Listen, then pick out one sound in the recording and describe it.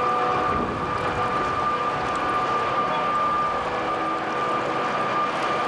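Water sloshes against steel pillars.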